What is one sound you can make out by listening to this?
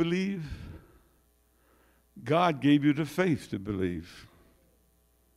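An elderly man speaks through a microphone in a reverberant hall, with pauses.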